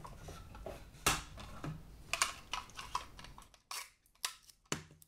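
Plastic wrap rustles and crinkles as a hand handles it.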